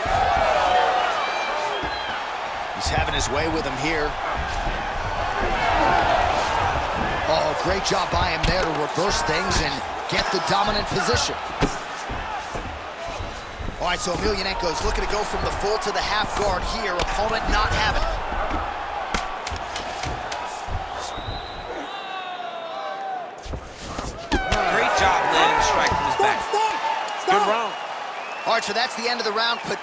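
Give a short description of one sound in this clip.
A crowd cheers and roars.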